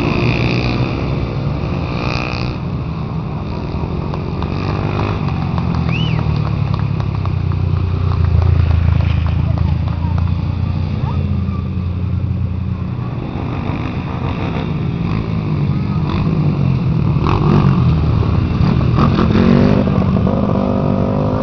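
Motorcycle engines drone and rev in the distance.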